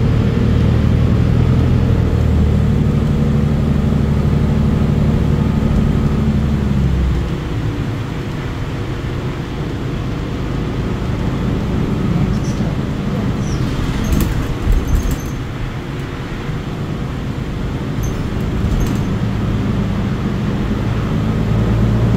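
An articulated diesel-electric hybrid city bus drones and hums from inside as it drives.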